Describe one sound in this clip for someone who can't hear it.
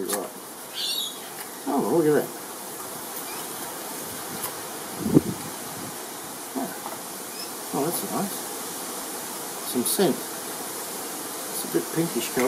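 Small plastic parts click together in a man's hands.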